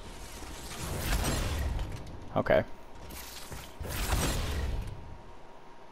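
Jet thrusters whoosh and roar.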